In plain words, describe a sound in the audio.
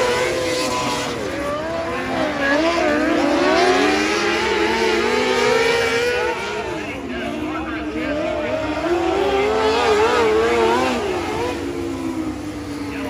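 Small race car engines whine and rev loudly as they speed past.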